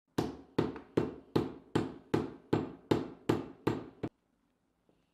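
A wooden mallet pounds steadily in quick, even blows.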